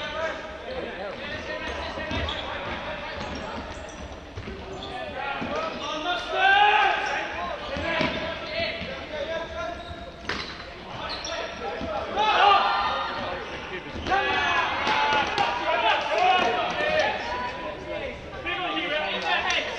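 A ball thuds on the floor.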